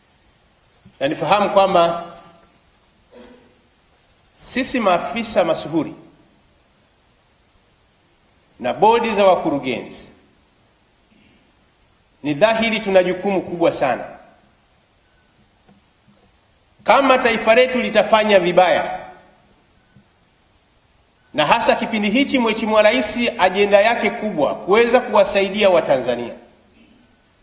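A young man speaks with animation into a microphone, in short phrases with pauses.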